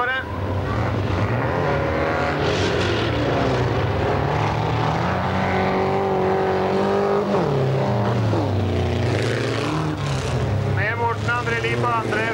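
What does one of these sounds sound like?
Several race car engines roar and rev loudly, rising and falling in pitch.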